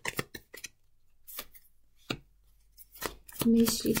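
A card is laid down with a soft tap.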